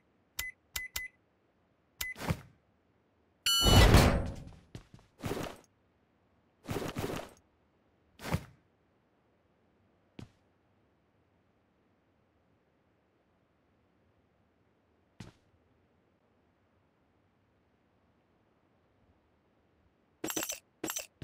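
Short electronic clicks of a game menu sound.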